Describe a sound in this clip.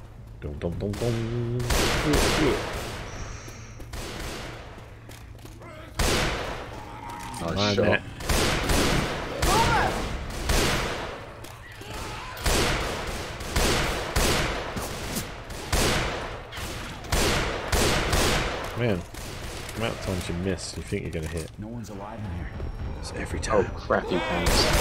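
Rifle shots ring out again and again in an echoing hall.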